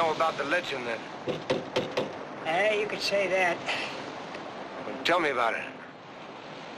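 An elderly man shouts loudly nearby.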